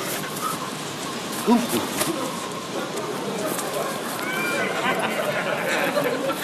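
Several people jog across dry grass with soft, quick footsteps.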